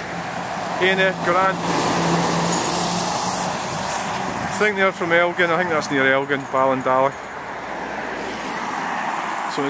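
A heavy lorry drives past close by with a deep engine rumble.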